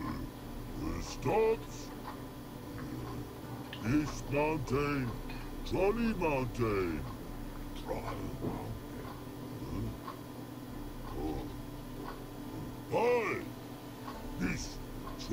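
Deep, gruff creature voices talk back and forth in a slow, clumsy way.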